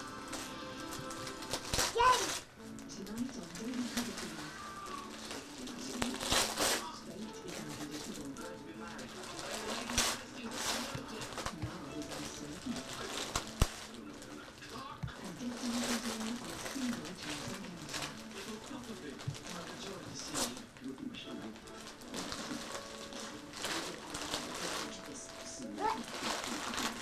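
A small child babbles softly nearby.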